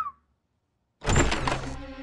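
A door handle clicks as a hand turns it.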